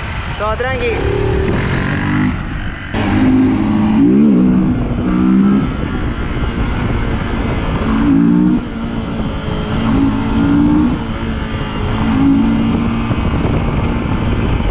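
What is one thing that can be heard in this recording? A motorcycle engine revs up and down at close range.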